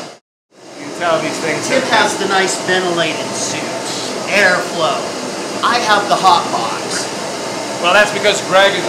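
Two men talk with animation nearby.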